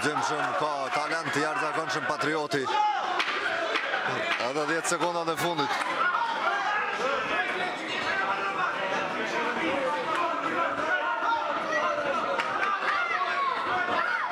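A crowd of spectators shouts and cheers in a hall.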